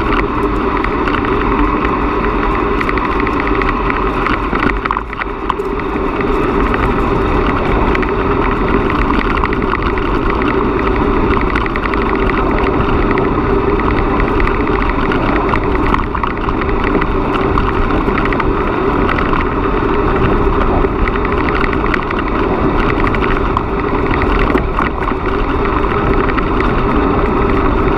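Bicycle tyres crunch and rattle over a gravel path.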